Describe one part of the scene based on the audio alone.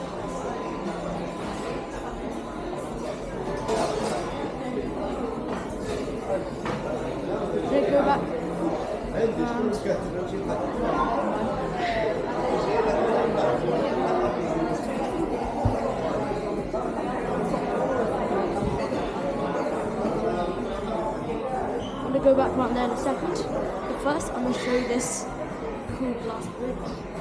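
Many people talk in a low murmur in a large, echoing room.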